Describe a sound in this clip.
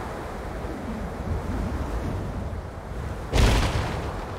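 Wind rushes past a flying creature as it glides.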